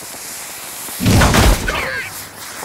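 A firework bangs with a loud burst.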